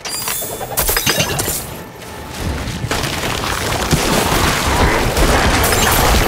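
Game combat sounds of spells and hits crash and clatter.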